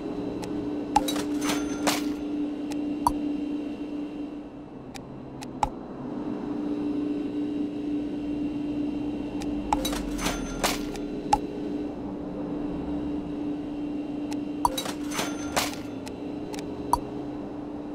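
Short electronic clicks sound as menu options are picked.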